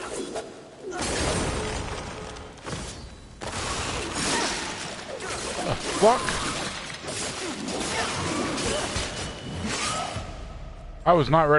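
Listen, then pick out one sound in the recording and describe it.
A large creature screeches and roars.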